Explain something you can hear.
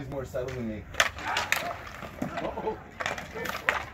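Hockey sticks clack sharply against a puck and the ice.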